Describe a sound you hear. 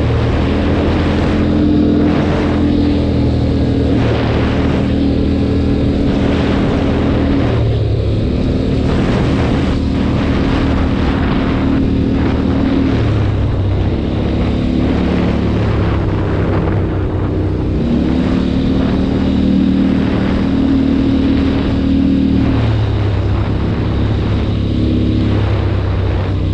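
A quad bike engine drones close by, revving up and down as it shifts.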